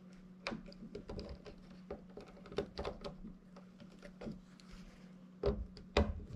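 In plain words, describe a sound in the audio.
A screwdriver scrapes and clicks against a small metal plate.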